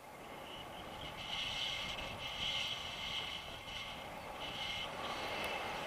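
Wind rushes steadily past outdoors.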